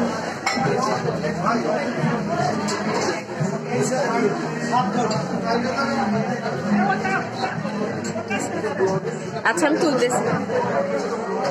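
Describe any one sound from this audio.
A crowd of men and women talk over one another close by.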